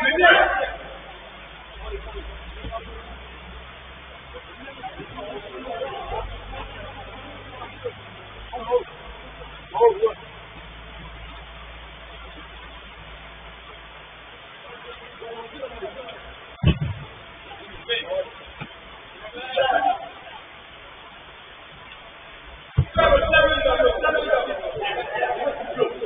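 Men shout to each other from a distance.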